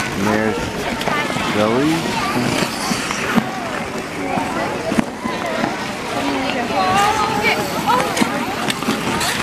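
Children chatter and shout nearby, outdoors.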